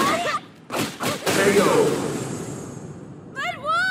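Heavy punches and kicks land with sharp thuds.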